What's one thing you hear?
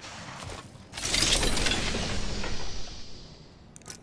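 Metal supply bins hiss and clank open.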